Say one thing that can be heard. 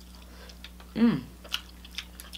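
A young woman hums with pleasure while eating.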